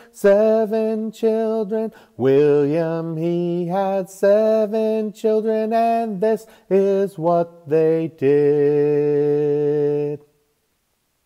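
A middle-aged man sings a song with animation, close to a microphone.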